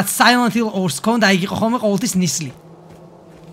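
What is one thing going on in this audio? A middle-aged man speaks animatedly and loudly into a microphone.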